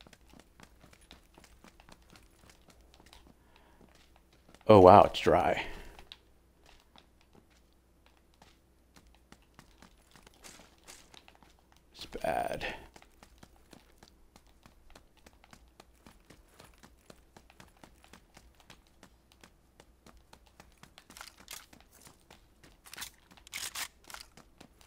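Footsteps tap quickly across a hard floor.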